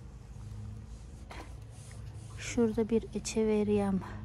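Gloved hands rustle and tap against a plant pot.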